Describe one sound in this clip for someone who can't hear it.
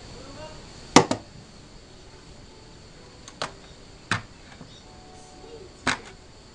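A baby bangs on a computer keyboard.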